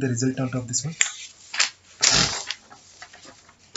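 Paper sheets rustle and slide as they are shuffled.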